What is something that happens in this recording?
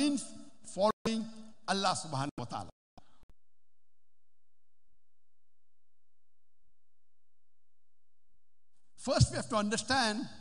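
A man speaks with animation through a loudspeaker in a large hall.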